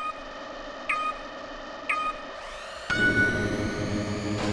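Countdown beeps sound three times, the last one higher and longer.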